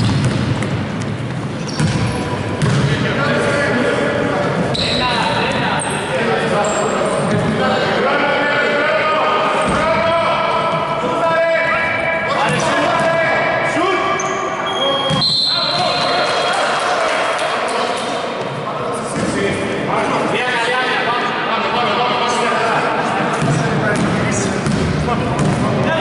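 Young men shout to each other across the court.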